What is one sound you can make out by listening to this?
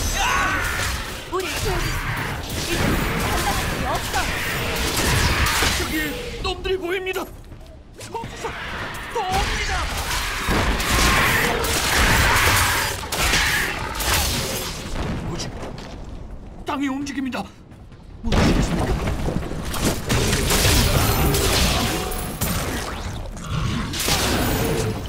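Spells blast and crackle in a game battle.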